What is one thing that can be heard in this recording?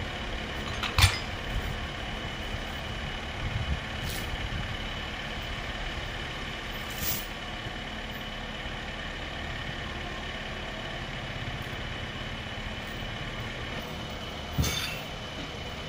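A metal chain clinks as it is pulled taut.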